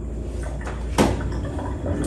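A glass knocks against a hard surface.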